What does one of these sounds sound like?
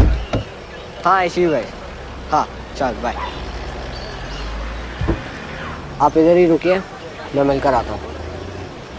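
A young man speaks up close.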